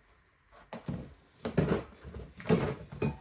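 Spray cans clink against each other.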